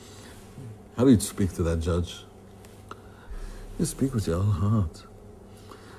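An elderly man speaks calmly and earnestly, close to a microphone.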